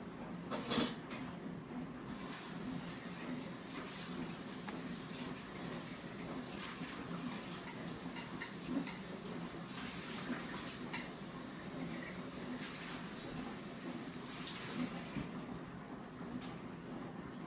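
A baby girl chews and smacks her lips while eating.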